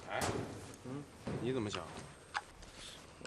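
A young man asks a question calmly.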